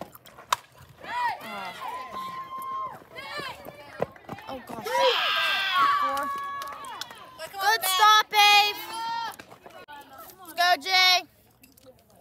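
Young women shout and cheer loudly outdoors.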